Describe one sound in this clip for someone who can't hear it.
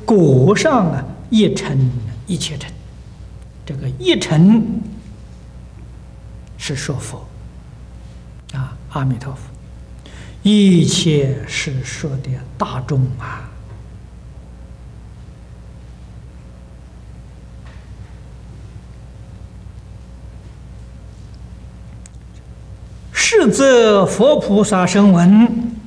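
An elderly man speaks calmly into a microphone, pausing often.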